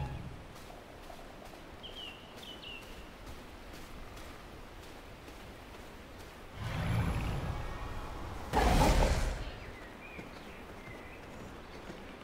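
Footsteps tread on soft forest ground.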